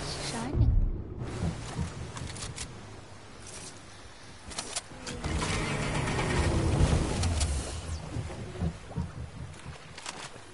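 Water splashes as a swimmer moves through it.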